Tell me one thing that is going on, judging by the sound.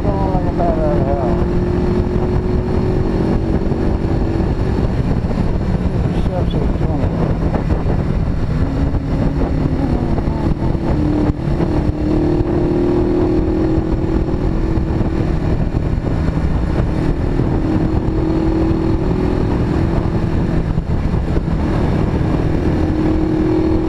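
Wind buffets loudly against the rider.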